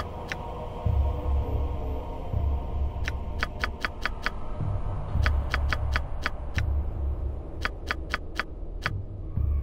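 Menu buttons click in quick bursts.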